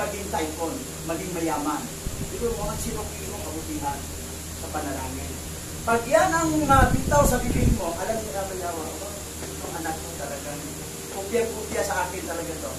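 A middle-aged man preaches with animation into a microphone, his voice raised at times.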